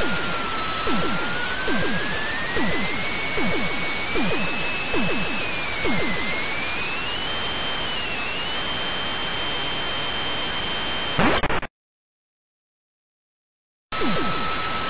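Electronic laser shots zap in quick falling bursts.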